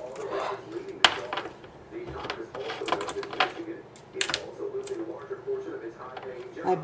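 Small plastic items click and tap nearby.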